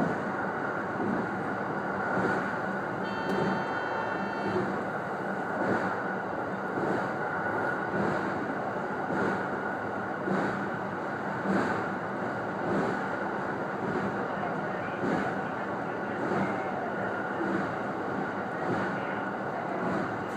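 An electric train runs at speed across a steel truss bridge, heard from inside the cab.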